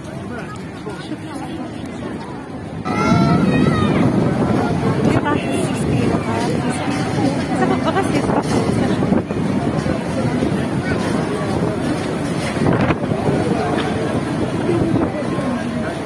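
A crowd of men and women talk and call out nearby.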